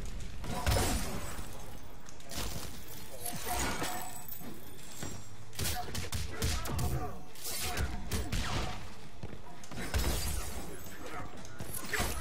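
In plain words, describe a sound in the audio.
Punches and kicks land with heavy thuds in a fighting game.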